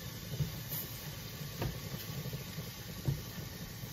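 A cloth wipes a stovetop.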